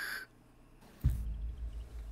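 A heavy blow thuds.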